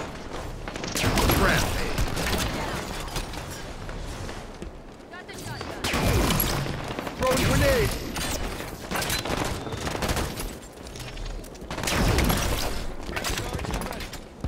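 A laser weapon fires in loud, buzzing bursts.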